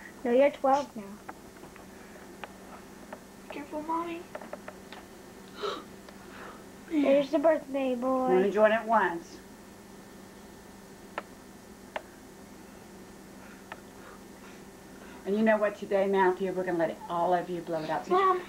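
A young boy talks casually close by.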